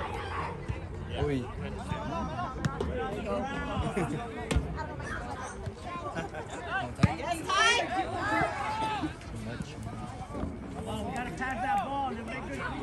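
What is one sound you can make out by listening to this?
A crowd of young men and women shout and cheer outdoors.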